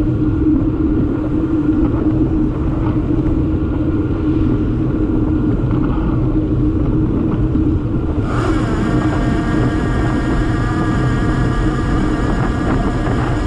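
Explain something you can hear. Wind buffets loudly outdoors throughout.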